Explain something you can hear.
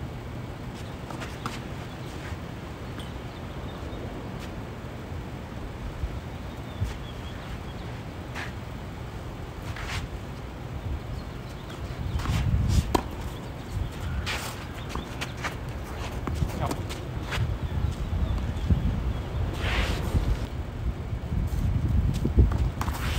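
A tennis ball bounces on the court.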